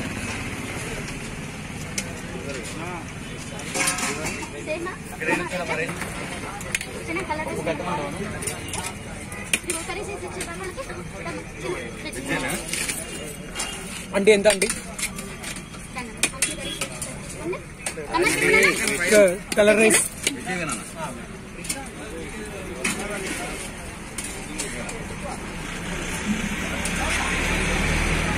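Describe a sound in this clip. Steel ladles clink against steel pots as food is served.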